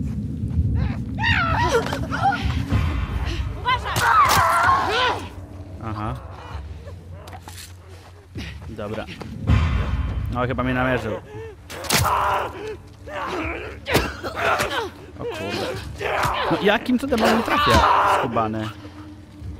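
Infected creatures shriek and growl.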